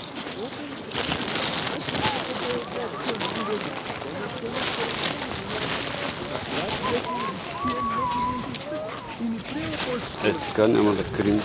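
Thick fabric rustles and rubs very close by.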